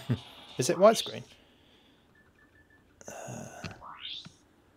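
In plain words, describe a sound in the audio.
Buttons on a handheld game console click softly.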